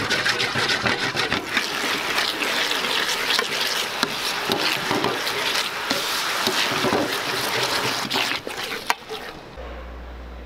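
Sauce sizzles and bubbles loudly in a hot pan.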